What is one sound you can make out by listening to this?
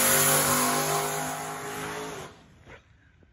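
A race car engine roars as the car pulls away and fades into the distance.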